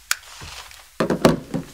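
A woman speaks.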